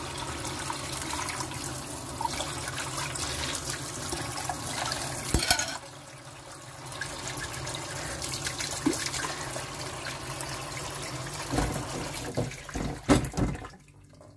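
Dishes and cutlery clink in a sink.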